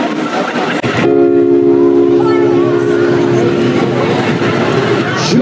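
A keyboard plays a steady, sustained chord through loudspeakers.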